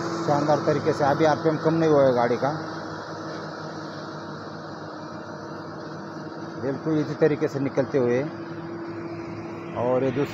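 A heavy truck engine rumbles as the truck drives away.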